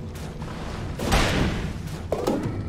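A fiery spell blasts with a loud whoosh.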